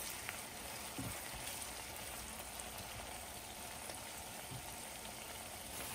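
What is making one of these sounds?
A silicone spatula scrapes and stirs onions in a nonstick pan.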